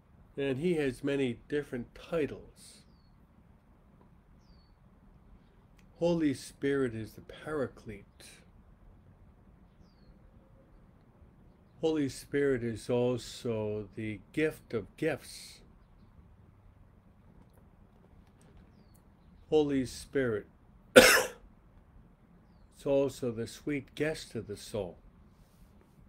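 A middle-aged man speaks calmly and slowly into a microphone, pausing between phrases.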